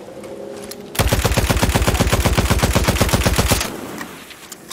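A machine gun fires a rapid, loud burst.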